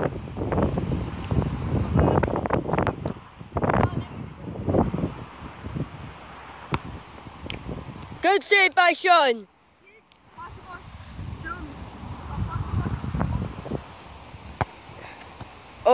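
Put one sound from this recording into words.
A boy kicks a football with a dull thud.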